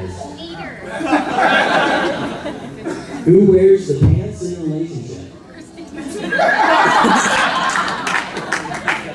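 A crowd laughs and cheers.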